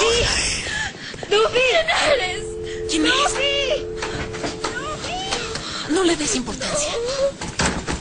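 A second young woman speaks urgently close by.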